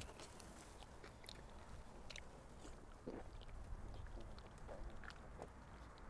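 A young man gulps a drink.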